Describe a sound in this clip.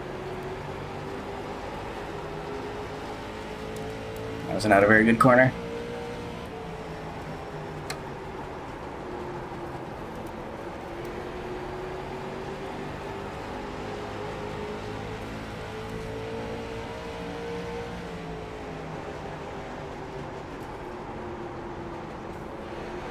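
Race car engines drone steadily, rising and falling in pitch as the cars speed around the track.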